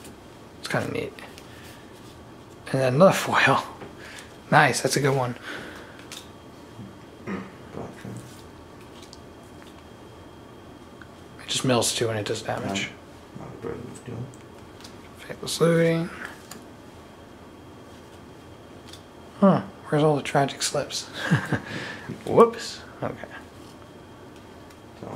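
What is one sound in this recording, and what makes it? Playing cards softly slide and flick against one another.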